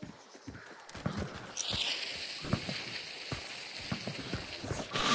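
Hands scrape and thud while climbing over rough rock.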